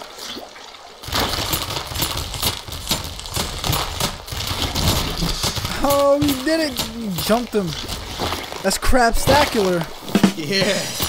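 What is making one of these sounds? Video game fighting sounds splash and crunch.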